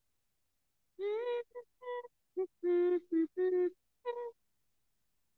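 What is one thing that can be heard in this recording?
A young woman sings softly into a close microphone.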